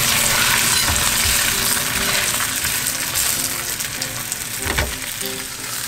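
Tongs scrape against a pan.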